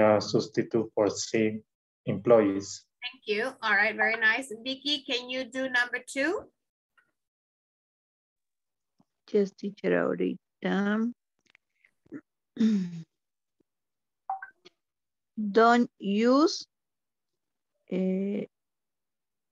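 A woman speaks calmly through an online call.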